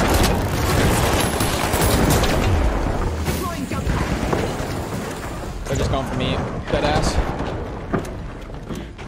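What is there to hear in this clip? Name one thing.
Gunshots and explosions boom loudly.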